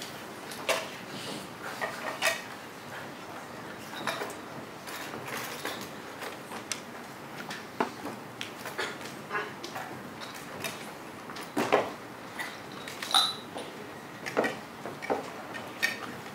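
Footsteps cross a wooden floor.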